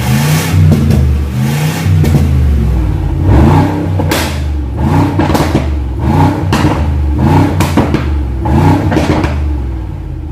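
An exhaust crackles and pops between revs.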